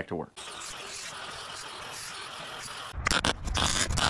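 An angle grinder whines against metal.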